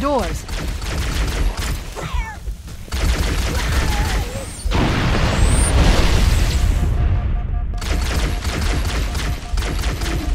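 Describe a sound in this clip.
A plasma gun fires in rapid bursts.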